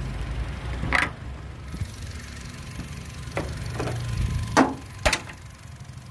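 A metal prop rod clicks and knocks against a car bonnet.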